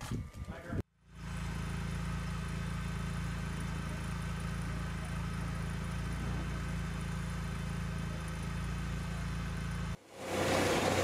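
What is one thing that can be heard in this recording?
A vehicle's engine hums steadily.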